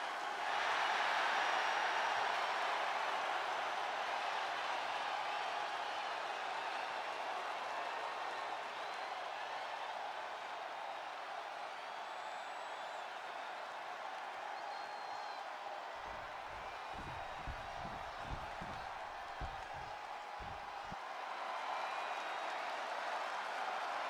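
A large crowd cheers and roars throughout a big echoing arena.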